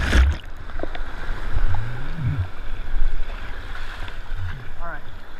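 Water splashes and sloshes close by, outdoors.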